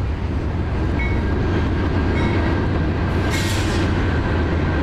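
Train wheels squeal and screech on the rails.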